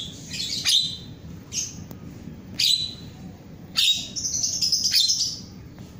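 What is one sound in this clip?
A small caged bird sings in loud, bright chirping bursts.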